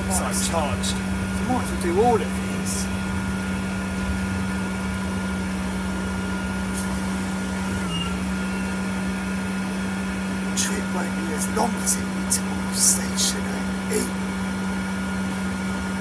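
A bus engine hums steadily from inside while driving.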